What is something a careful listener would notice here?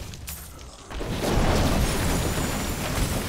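Fiery spells burst and roar.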